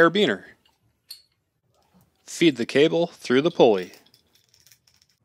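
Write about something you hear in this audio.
A metal pulley clinks and rattles on its hook.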